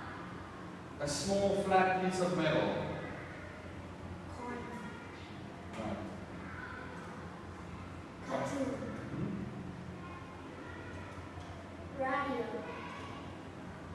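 A young girl answers briefly in a soft voice.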